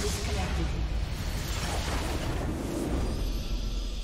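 Magic spell effects crackle and whoosh in a fight.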